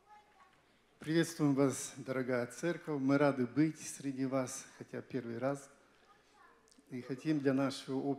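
An older man speaks calmly through a microphone over loudspeakers in a large hall.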